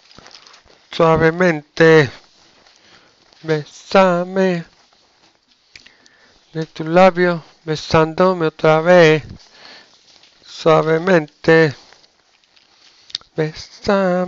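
A man speaks close through a headset microphone, explaining.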